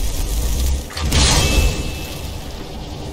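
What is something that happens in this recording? A portal bursts open with a loud whoosh.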